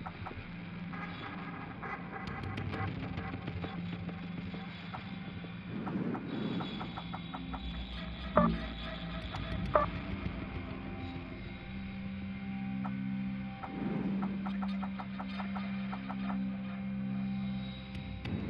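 Short electronic menu clicks sound again and again.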